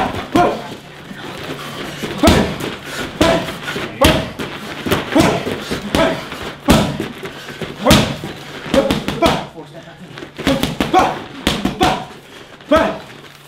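Punches and kicks smack sharply into padded mitts, again and again.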